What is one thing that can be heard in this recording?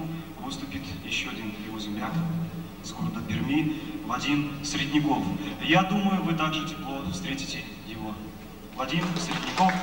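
A man speaks calmly into a microphone over loudspeakers in a large hall.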